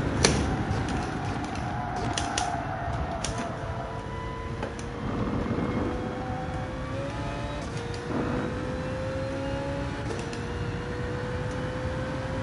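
A racing car engine revs steadily higher, dropping briefly with each gear change.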